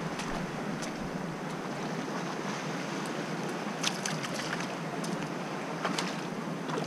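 Footsteps crunch on wet stones and pebbles.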